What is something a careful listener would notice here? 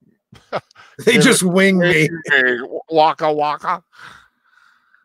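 A man laughs into a close microphone.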